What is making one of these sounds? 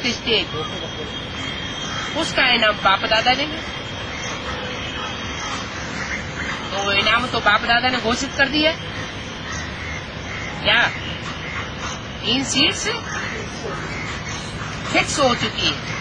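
An elderly man speaks calmly and close by, in short bursts with pauses.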